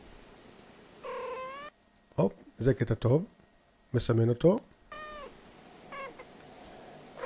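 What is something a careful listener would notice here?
A cat meows in drawn-out, wavering tones.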